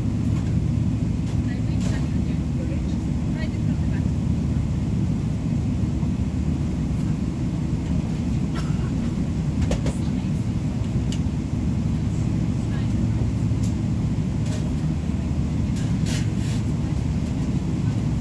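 Inside a jet airliner's cabin, a low engine rumble drones as the plane taxis.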